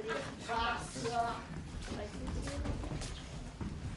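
Footsteps thud on a wooden stage floor.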